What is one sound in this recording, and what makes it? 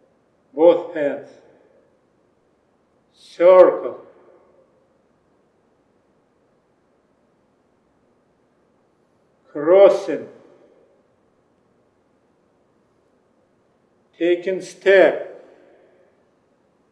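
A man gives short spoken instructions calmly through a microphone, with pauses between phrases.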